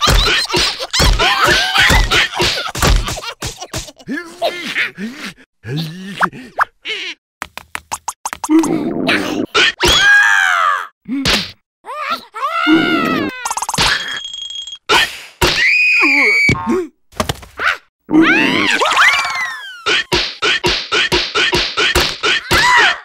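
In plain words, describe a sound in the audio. Cartoon creatures shriek and babble in high squeaky voices.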